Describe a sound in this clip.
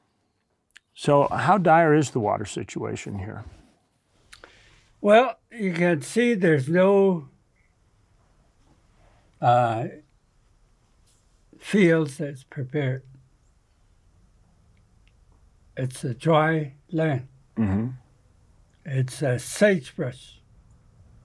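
An elderly man speaks calmly and close up.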